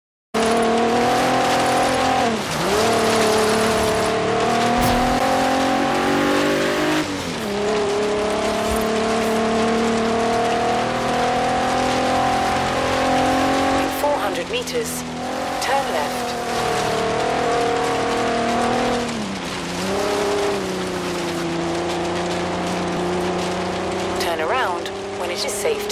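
An engine roars steadily, dipping and rising as gears shift.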